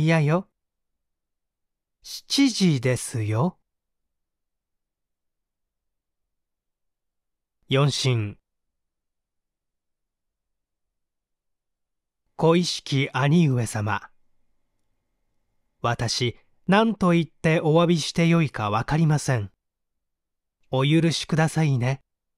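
A young man speaks calmly and close, in short phrases with long pauses.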